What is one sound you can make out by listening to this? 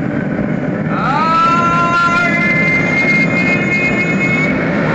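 A motorcycle engine revs up sharply.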